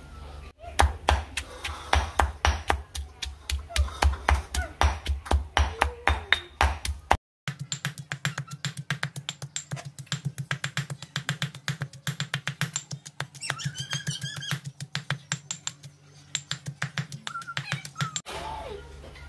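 A stone pestle pounds rapidly and rhythmically in a stone mortar.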